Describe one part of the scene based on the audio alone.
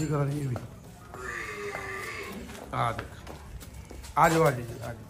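Hooves clop slowly on concrete.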